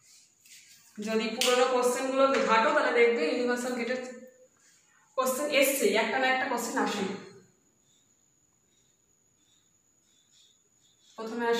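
A woman speaks calmly and clearly nearby.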